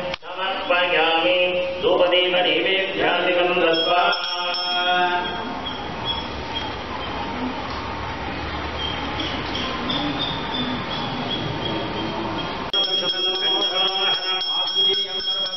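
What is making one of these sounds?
An elderly man chants in a steady singing voice through a microphone.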